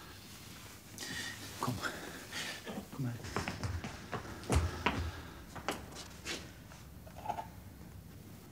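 A man speaks urgently and close by.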